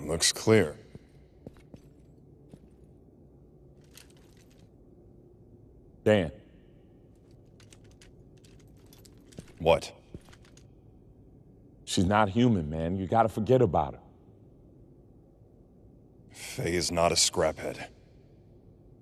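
A young man speaks calmly in a low voice.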